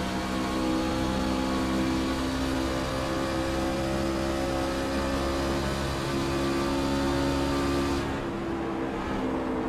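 A NASCAR-style V8 race truck engine drones at full throttle.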